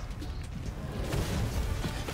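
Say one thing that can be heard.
An explosion booms and debris clatters down.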